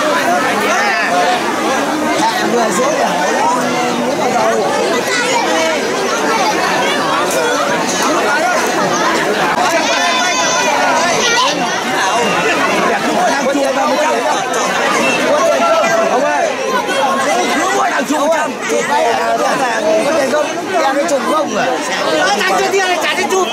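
A large outdoor crowd chatters and calls out.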